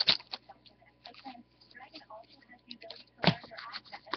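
Trading cards shuffle and flick between fingers.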